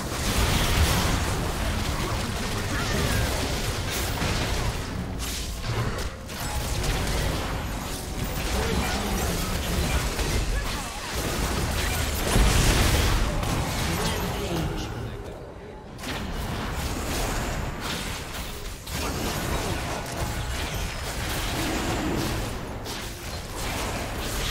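Magic blasts and hits crackle and whoosh in a fast game battle.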